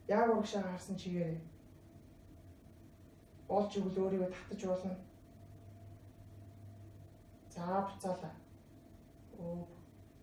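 A woman speaks calmly, close by, in short phrases.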